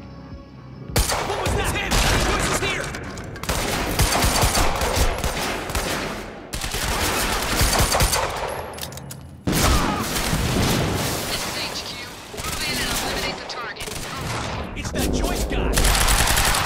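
Gunshots fire in rapid, loud bursts.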